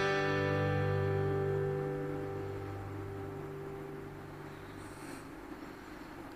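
A middle-aged man holds a long sung note close to a microphone, then lets it fade away.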